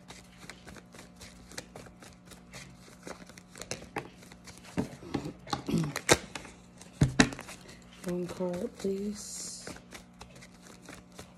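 Paper bills flick and riffle quickly, close by.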